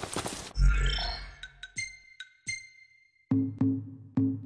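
Soft menu chimes blip several times.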